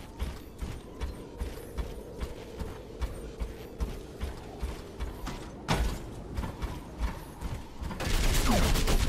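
Footsteps thud quickly in a steady rhythm.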